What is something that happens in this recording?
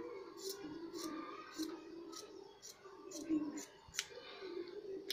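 Scissors snip through fabric in quick, regular cuts.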